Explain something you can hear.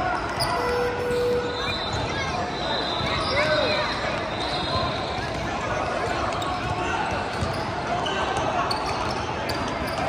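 Young players call out to each other across the hall.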